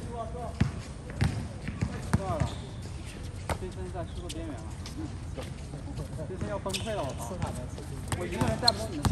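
A basketball bounces on an outdoor court with sharp thuds.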